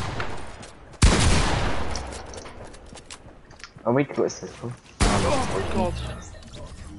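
Heavy gunshots boom, each followed by a rumbling echo.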